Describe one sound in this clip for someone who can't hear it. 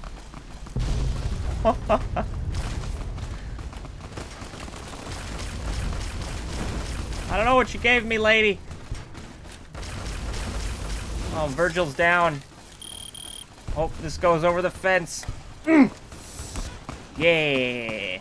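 An energy weapon fires in short zapping bursts.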